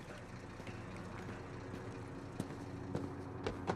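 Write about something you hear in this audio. Footsteps crunch over debris on a hard floor.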